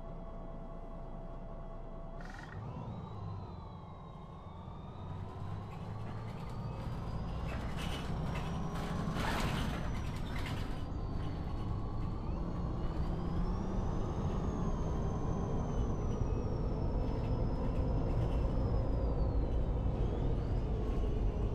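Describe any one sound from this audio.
A bus engine hums and rises in pitch as the bus speeds up.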